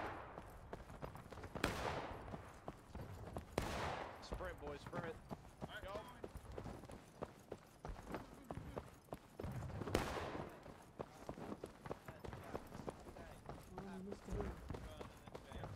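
Footsteps crunch steadily on a dirt road.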